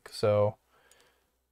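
A short electronic menu chime sounds.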